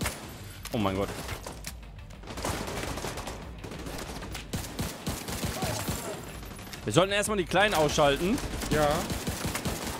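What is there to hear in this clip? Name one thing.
Gunfire crackles in short bursts from a video game.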